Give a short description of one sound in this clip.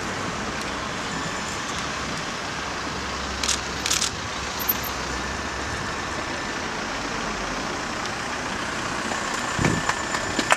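A flag flaps in the wind.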